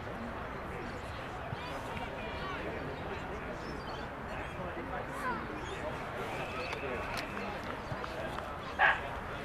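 Young men shout and call out to each other across an open field, heard from a distance.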